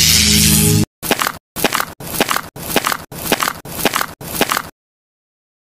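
Footsteps tread steadily on the ground.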